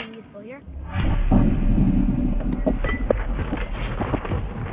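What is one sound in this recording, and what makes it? A heavy stone chest grinds open with a deep rumble.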